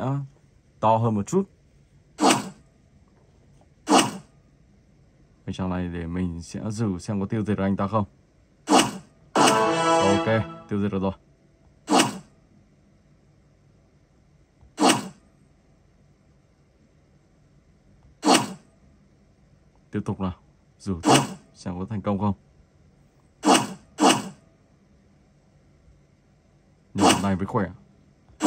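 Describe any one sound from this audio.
A tablet game plays short whooshing sword swing sounds.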